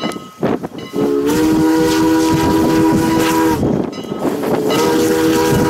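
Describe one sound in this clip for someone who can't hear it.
A steam locomotive's whistle blows loudly in long chords.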